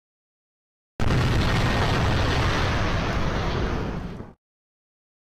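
A fiery explosion roars and slowly fades.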